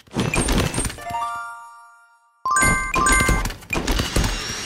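A short chiming jingle rings out.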